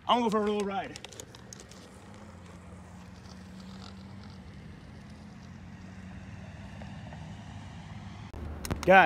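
Skateboard wheels roll on pavement.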